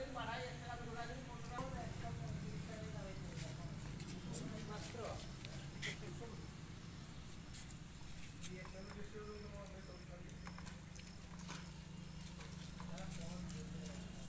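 Men talk nearby.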